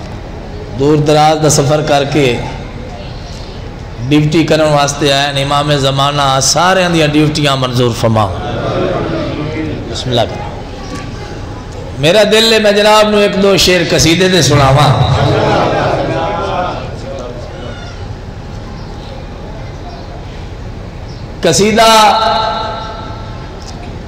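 A man speaks passionately into a microphone over a loudspeaker, in bursts with pauses, in a reverberant hall.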